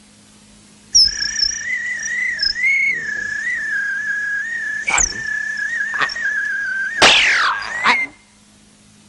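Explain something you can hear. A fly buzzes with a wavering whine.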